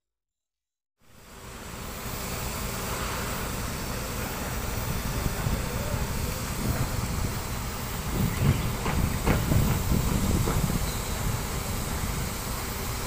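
A concrete mixer truck's engine rumbles steadily outdoors.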